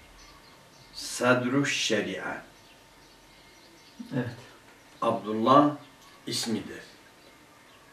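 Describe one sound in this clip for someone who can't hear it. A middle-aged man reads aloud calmly, close to a microphone, in short phrases with pauses.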